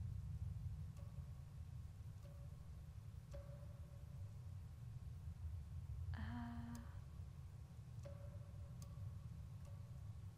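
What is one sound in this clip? Soft menu chimes sound as options are selected.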